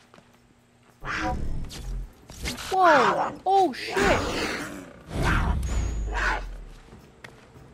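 A big cat snarls and growls up close.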